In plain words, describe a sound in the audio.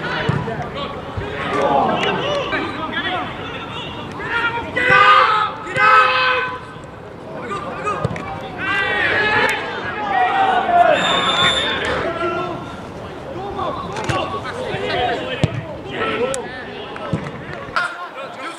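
Men shout and call out across an open field outdoors.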